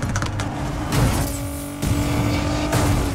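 A car crashes into a roadside barrier with a loud bang.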